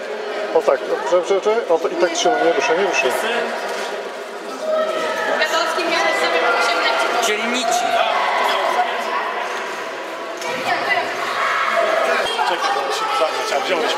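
A crowd of children chatters in an echoing hall.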